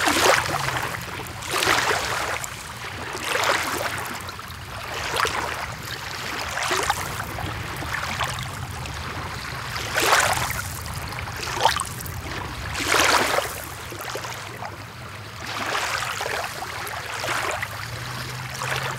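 Shallow water laps gently in slow, repeated swells.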